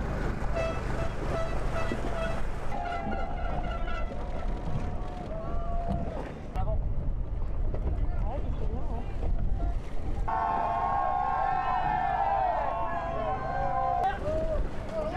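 Boat horns blare in long steady blasts nearby.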